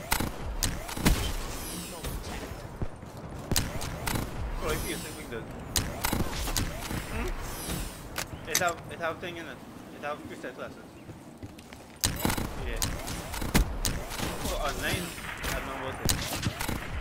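Gunshots crack in short, sharp bursts.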